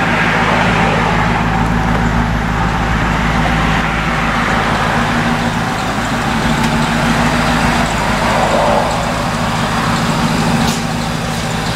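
A truck engine idles with a steady, deep rumble close by.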